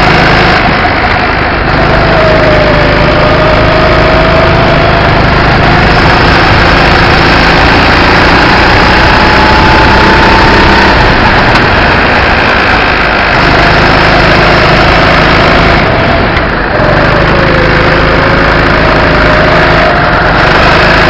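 A kart engine buzzes loudly close by, its pitch rising and falling with the throttle.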